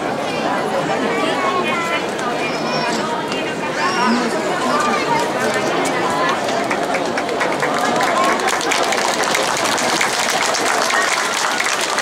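A horse's hooves clop on pavement.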